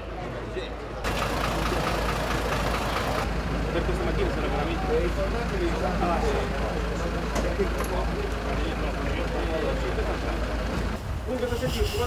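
A fire engine idles with a low, steady rumble.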